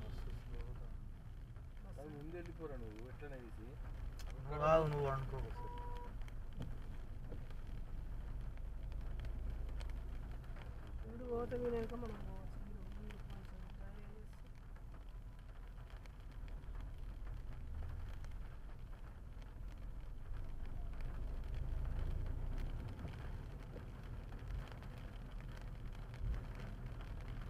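A car engine hums low and steady as the car drives along a road.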